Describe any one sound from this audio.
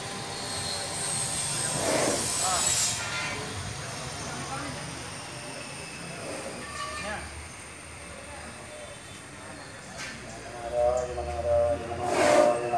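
An elephant rustles and tears palm leaves with its trunk.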